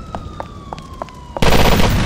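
Flames crackle on a burning car.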